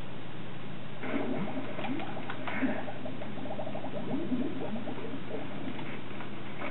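Bubbles pop and chime in a quick burst.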